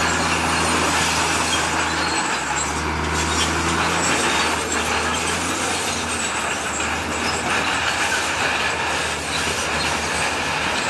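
Rocks scrape and grind under a bulldozer blade.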